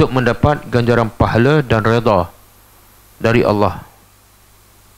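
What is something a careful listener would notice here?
A middle-aged man speaks calmly through a headset microphone.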